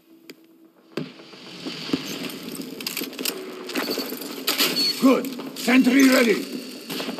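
Gunfire rattles in quick bursts.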